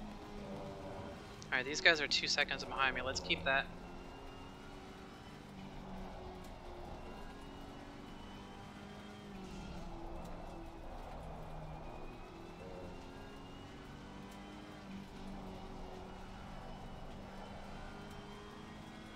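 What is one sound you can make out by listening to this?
A racing car engine drones steadily, shifting in pitch.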